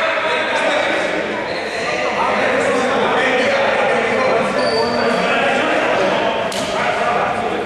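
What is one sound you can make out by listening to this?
Several men talk and call out to each other in a large echoing hall.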